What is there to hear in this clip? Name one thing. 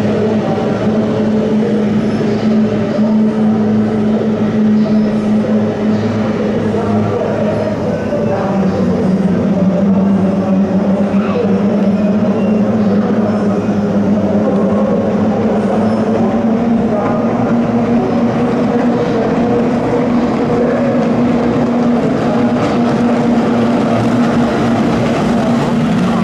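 Racing boat engines roar steadily across open water.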